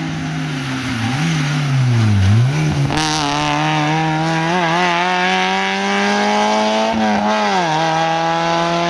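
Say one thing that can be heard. Gear changes make a rally car engine dip and rise sharply.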